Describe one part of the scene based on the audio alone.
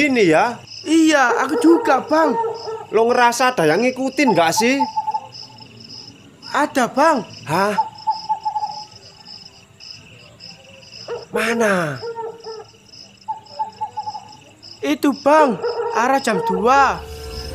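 Another young man answers in a puzzled voice close by.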